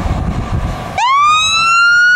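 A fire truck siren starts wailing loudly and rises in pitch.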